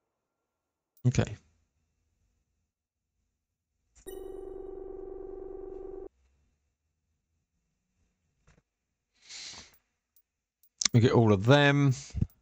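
Short electronic chimes ring out.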